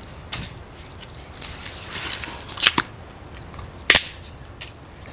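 Twigs crackle and pop as a small fire burns.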